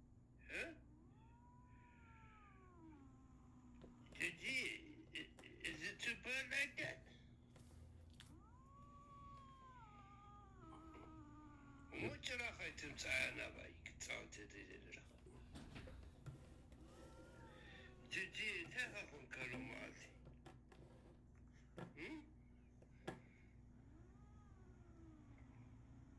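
A cat meows through a phone's small speaker.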